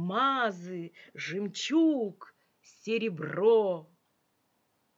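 An elderly woman speaks with expression into a microphone, heard as if over an online call.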